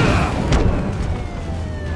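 Heavy punches land with dull thuds.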